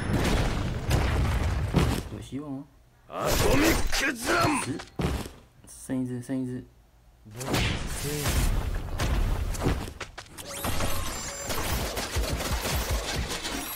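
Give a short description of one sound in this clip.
Explosions boom and crackle in quick bursts.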